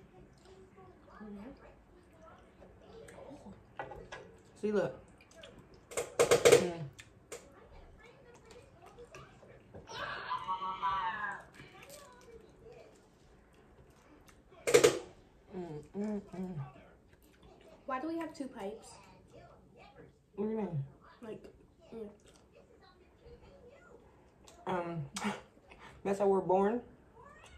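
A fork scrapes and clicks on food.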